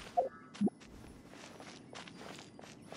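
Footsteps crunch on dirt.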